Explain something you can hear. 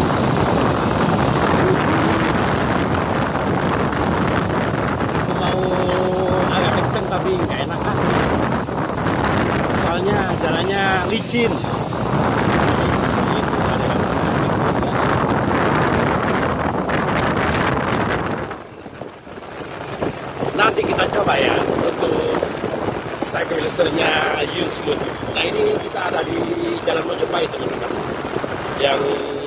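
Other motorbikes pass by on a wet road.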